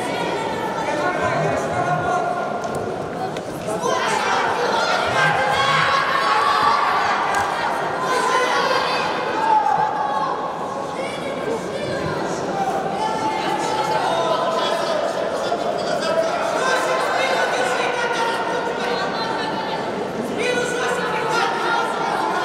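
A large crowd shouts and cheers in an echoing arena.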